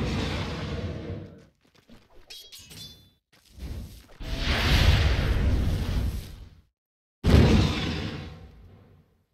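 Fiery spell blasts roar and crackle in bursts.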